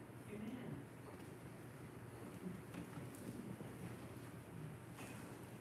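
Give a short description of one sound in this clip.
A group of elderly voices read aloud quietly at a distance in an echoing room.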